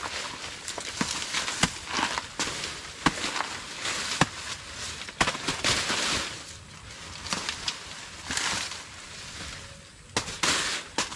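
A blade chops into a plant stalk with sharp, repeated thuds.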